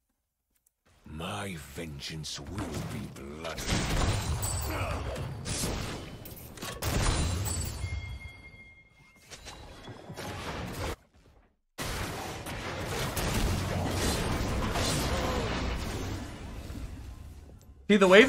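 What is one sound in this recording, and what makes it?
Spells and blows clash in a noisy video game fight.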